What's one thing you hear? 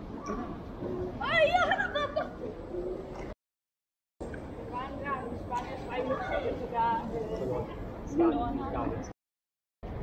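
Young women chatter as they walk past nearby.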